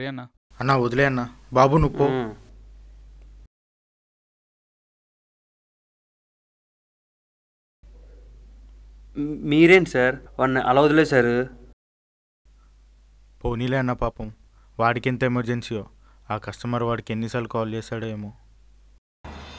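A young man speaks tensely, close by.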